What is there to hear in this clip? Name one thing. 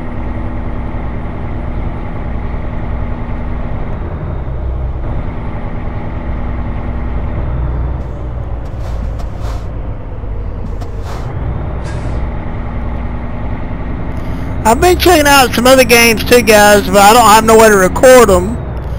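A truck engine drones low and steady.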